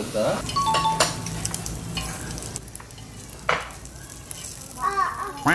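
Cutlery clinks against dishes.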